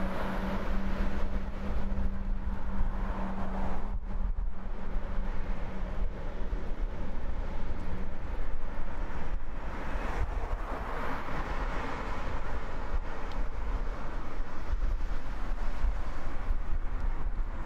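Traffic passes by steadily on a nearby road.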